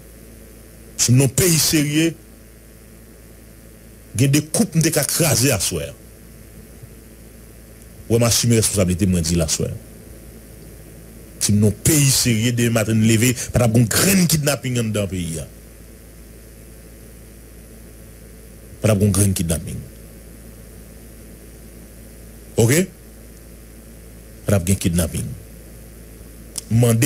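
A man speaks into a microphone in short bursts with pauses between.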